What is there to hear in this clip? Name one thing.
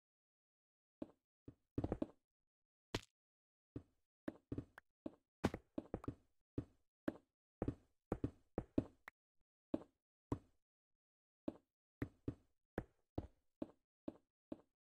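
Blocks are placed one after another with quick, soft thuds.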